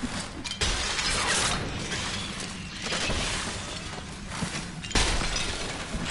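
Wooden objects smash and crash apart.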